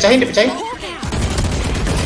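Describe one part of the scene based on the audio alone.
A rifle fires a quick burst of shots.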